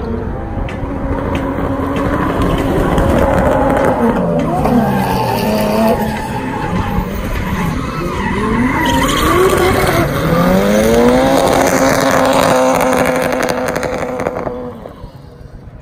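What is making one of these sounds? Several car engines rev hard and whine as cars drift past.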